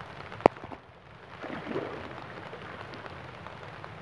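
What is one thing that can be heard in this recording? A cast net splashes onto water.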